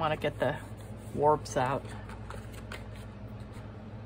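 A thin plastic sheet crinkles and rustles under hands.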